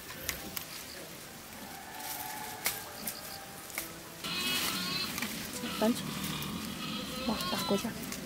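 Leafy plants rustle as hands pick through them.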